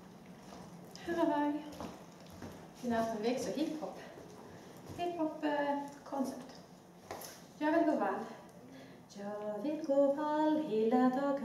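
A woman reads aloud nearby in a room.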